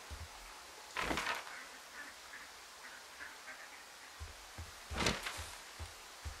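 A paper map rustles as it is unfolded and folded.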